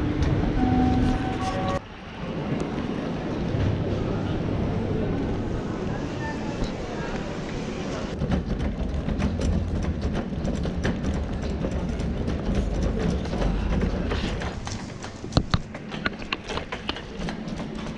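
A large hall echoes with a low murmur of distant voices.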